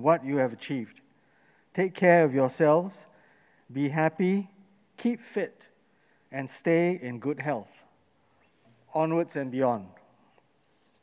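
An older man speaks calmly into a microphone in a large echoing hall.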